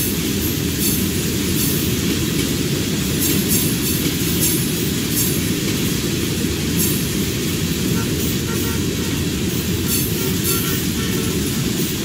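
A freight train rumbles steadily past, close by.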